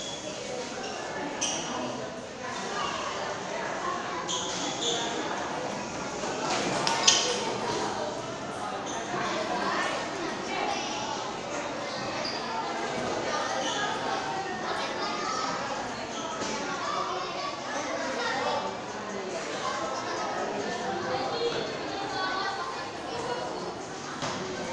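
Young men chat nearby in a room with a slight echo.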